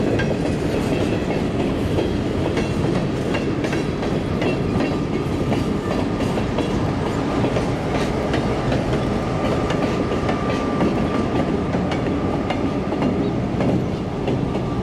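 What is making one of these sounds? Train wheels clack and squeal over the rails.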